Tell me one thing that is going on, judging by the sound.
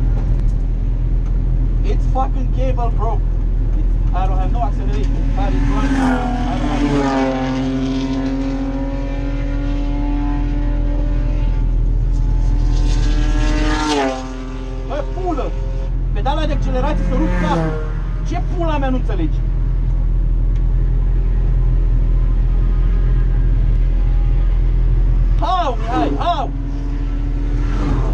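A race car engine roars loudly from inside the cabin, rising and dropping in pitch as it revs through the gears.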